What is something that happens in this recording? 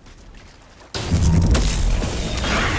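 A heavy blast booms and crackles.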